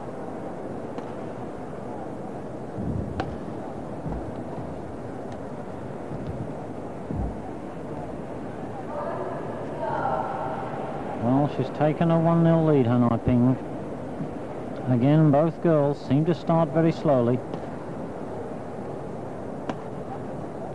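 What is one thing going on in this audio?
A racket hits a shuttlecock with sharp smacks.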